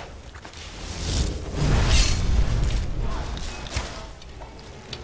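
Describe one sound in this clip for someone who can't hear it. Electricity crackles and bursts loudly.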